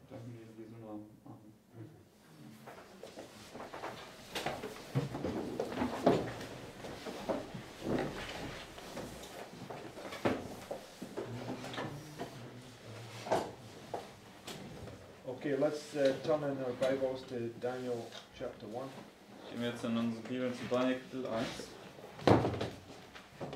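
A middle-aged man speaks calmly to a room, heard from across it.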